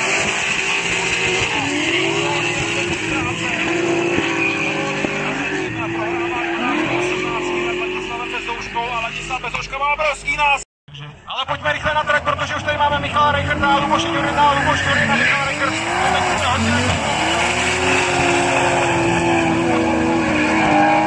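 Drift car engines roar and rev hard in the distance.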